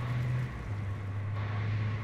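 A car engine drones steadily.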